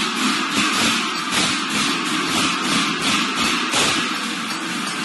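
Many men chant together in unison.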